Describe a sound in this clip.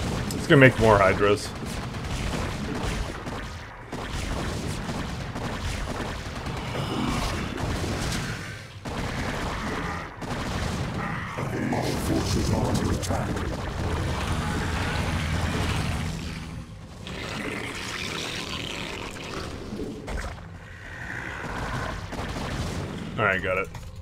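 Alien creatures in a video game screech and chitter.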